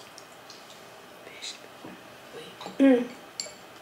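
A woman gulps water from a glass.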